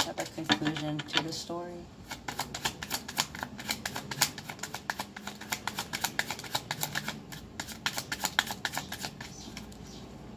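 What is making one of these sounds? Playing cards riffle and flick rapidly as a deck is shuffled close by.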